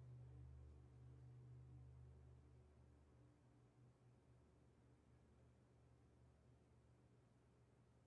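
A cello holds a low, quiet note.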